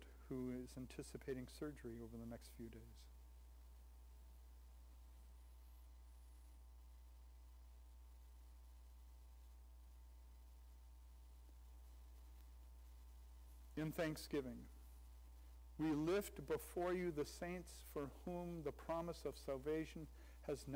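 An older man speaks calmly through a microphone, with long pauses.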